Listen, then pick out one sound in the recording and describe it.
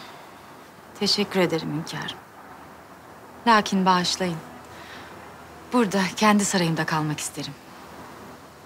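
A woman speaks quietly and close by.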